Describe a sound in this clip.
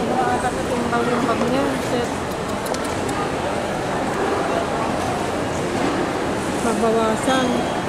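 A suitcase is handled and shifted on a hard floor.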